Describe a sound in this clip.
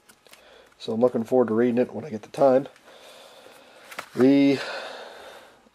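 A book scrapes softly as it is pulled from a tightly packed row of books.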